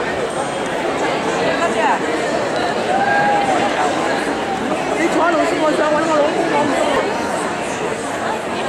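A large audience chatters and murmurs in an echoing hall.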